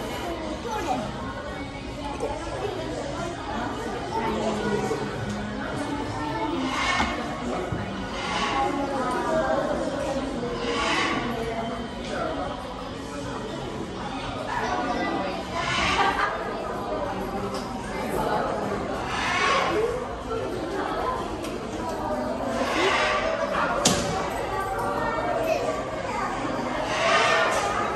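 Children and adults chatter and call out nearby indoors.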